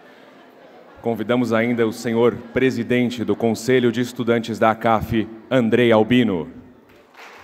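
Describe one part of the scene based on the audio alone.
A young man speaks calmly into a microphone over a loudspeaker.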